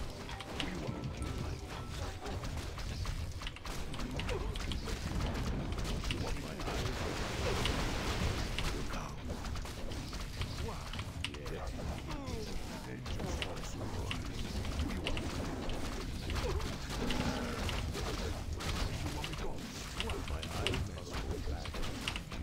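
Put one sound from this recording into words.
Game battle sounds clash and thud with spell effects.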